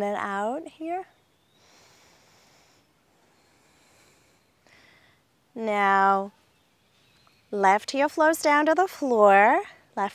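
A young woman speaks calmly and clearly, close to a microphone, with pauses.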